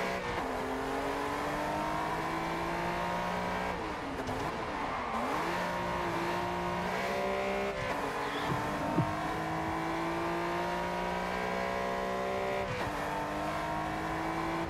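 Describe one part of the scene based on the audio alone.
A car engine revs high and climbs through the gears, with quick shifts.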